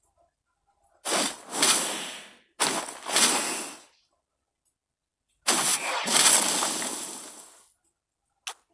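A hammer swings in a whooshing sweep of energy.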